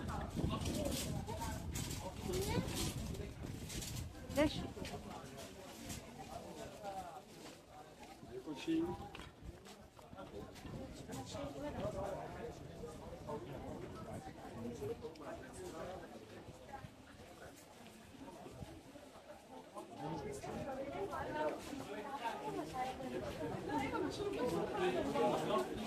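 A crowd of people chatter all around.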